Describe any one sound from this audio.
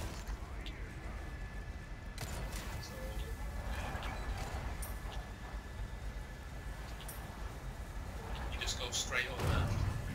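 Footsteps crunch over rubble and debris.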